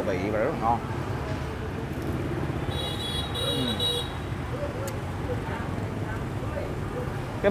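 A young man chews food with his mouth full.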